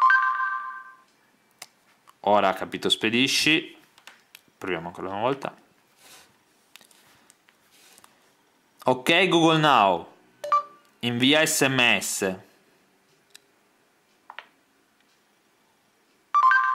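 A phone plays a short electronic chime.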